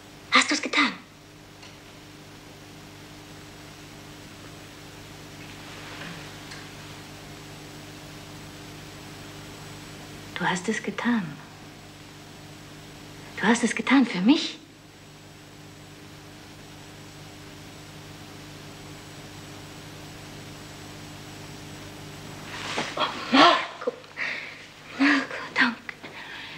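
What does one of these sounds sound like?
A woman speaks softly and emotionally, close by.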